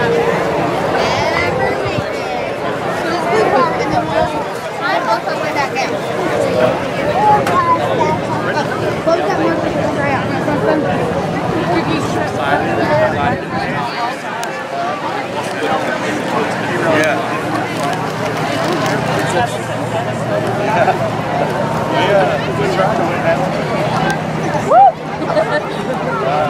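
A crowd of men, women and children chatters all around, close by.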